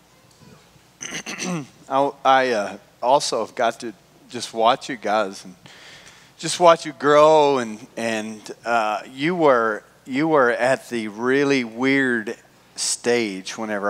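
A man talks with animation through a microphone, his voice filling a large hall.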